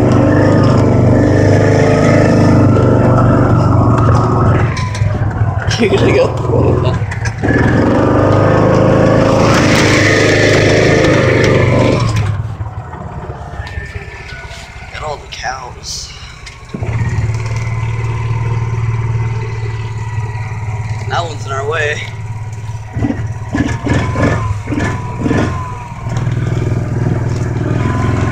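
A small vehicle engine hums steadily, quieter for a few seconds in the middle.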